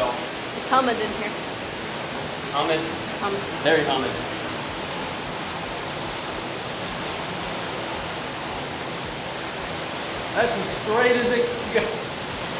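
A young man talks close to a clip-on microphone in short bursts.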